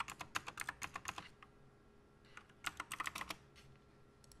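Keys on a mechanical keyboard clatter in quick bursts of typing.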